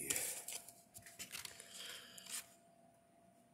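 A paper booklet rustles as it is handled.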